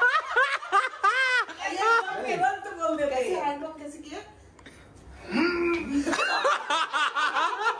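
A woman laughs loudly.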